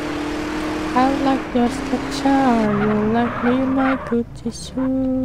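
Car tyres screech while skidding.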